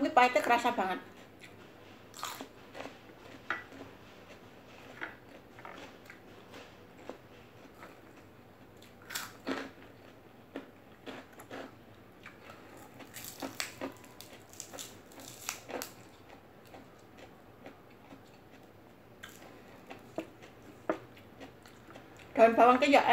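A woman chews crunchy raw vegetables.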